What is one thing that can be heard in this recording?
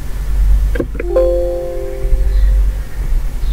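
A computer error chime sounds once.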